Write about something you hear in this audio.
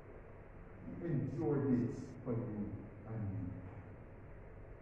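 A man speaks calmly through a microphone in an echoing room.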